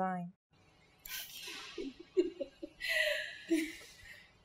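A woman laughs softly.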